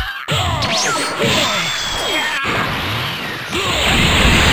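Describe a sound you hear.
Punches land with heavy thuds and whooshes.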